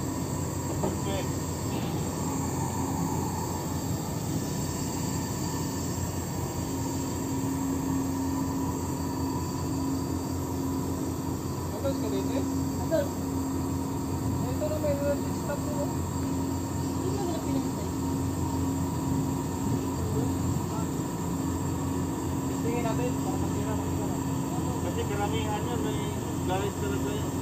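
Hydraulic machinery hums steadily as heavy steel hatch covers fold open.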